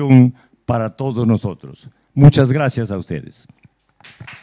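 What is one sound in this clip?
An elderly man reads out loud in a clear voice.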